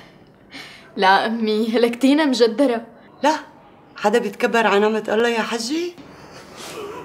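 A young woman speaks tearfully, close by.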